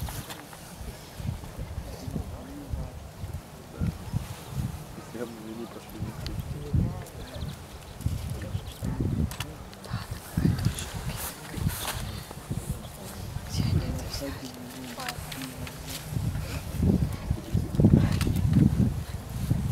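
Wind blows across an open field, rumbling low.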